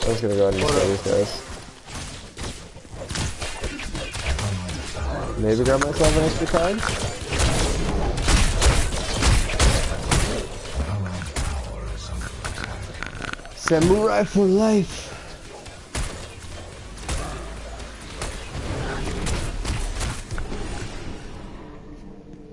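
Swords clash and blows land in a noisy fight.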